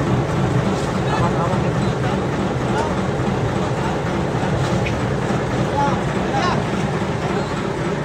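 Men talk on a boat deck.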